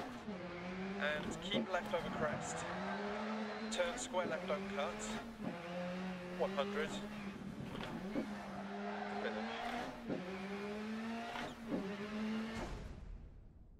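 A rally car engine revs hard and drops in pitch with each gear change.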